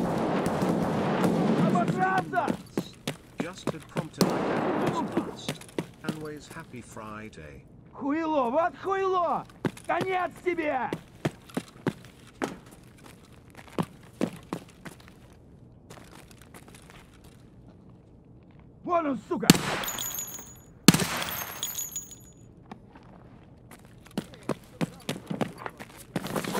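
Footsteps crunch on debris at a steady walking pace.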